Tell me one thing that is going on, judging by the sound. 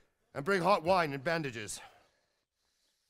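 An elderly man speaks firmly and clearly.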